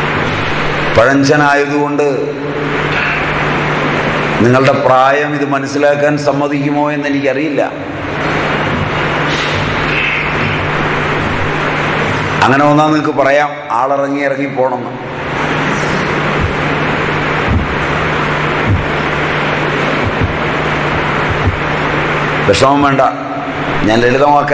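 A middle-aged man speaks calmly nearby, in short bursts.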